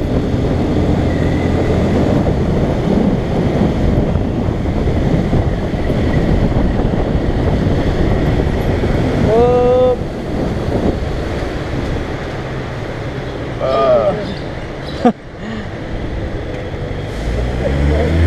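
Wind rushes past.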